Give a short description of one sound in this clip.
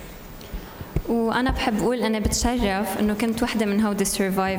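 A young woman sings into a microphone, amplified through loudspeakers in a large echoing hall.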